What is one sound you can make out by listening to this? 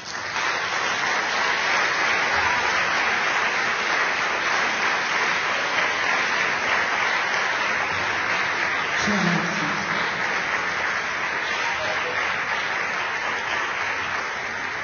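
A large audience applauds steadily.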